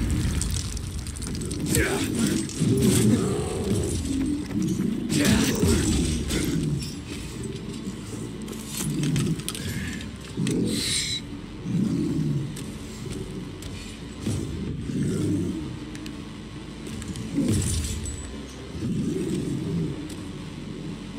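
A creature growls and groans over and over.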